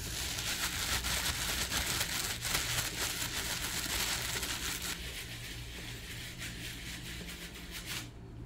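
Plastic wrap crinkles and rustles close up.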